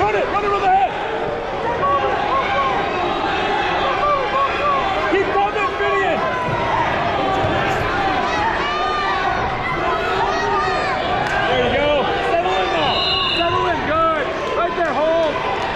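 A man close by shouts encouragement.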